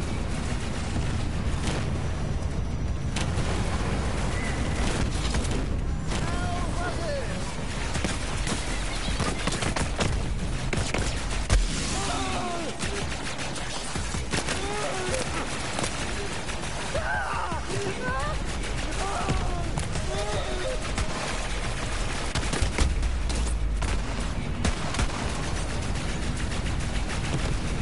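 Guns fire in rapid bursts with loud bangs.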